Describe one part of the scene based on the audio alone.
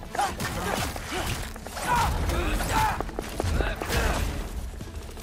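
Heavy blows thud and crack in a fight.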